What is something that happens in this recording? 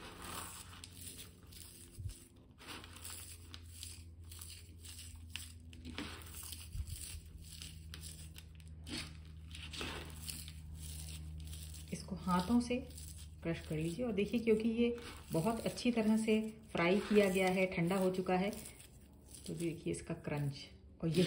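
Crisp fried onion shreds rustle and crackle as fingers toss them on a plate.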